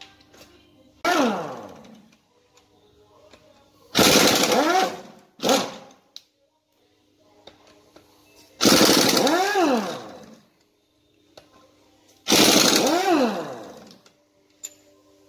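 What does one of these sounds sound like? A pneumatic impact wrench whirs loudly in short bursts that rise and fall in pitch.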